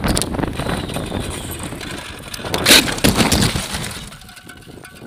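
Wind and road noise rush past a moving bicycle.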